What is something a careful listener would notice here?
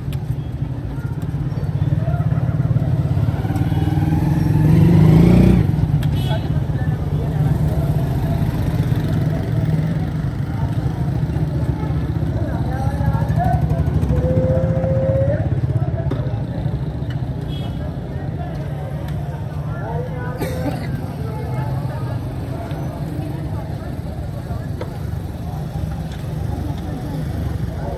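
Traffic rumbles along a busy street.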